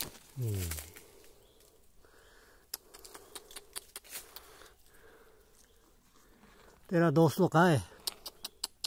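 A wild ox makes short, high bleating calls up close.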